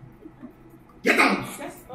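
A young man cries out in distress.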